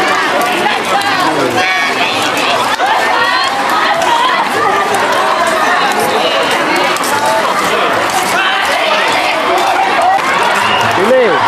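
A crowd of men and women talk loudly and over one another close by.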